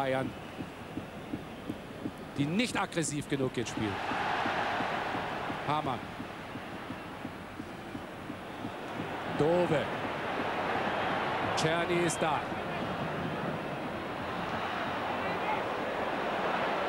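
A large stadium crowd cheers and roars, swelling and fading.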